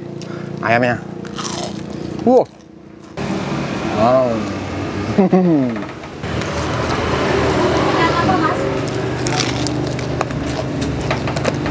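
Crispy fried food crunches as a man bites and chews.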